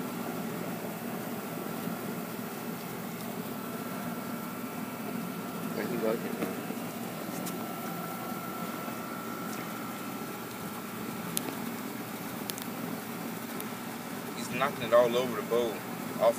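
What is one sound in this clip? A dog laps and chews wet food noisily from a metal bowl.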